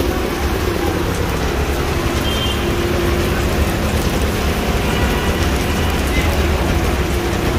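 Heavy rain falls steadily outdoors.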